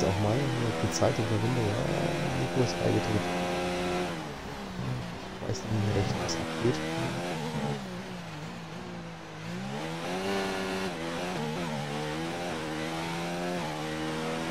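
A racing car engine roars at high revs, dropping in pitch when braking and rising again as it accelerates through the gears.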